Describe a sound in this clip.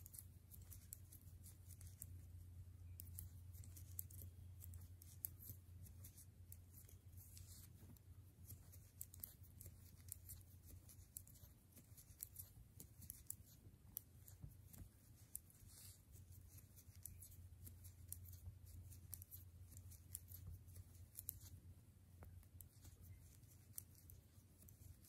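A metal crochet hook clicks and rubs softly against yarn.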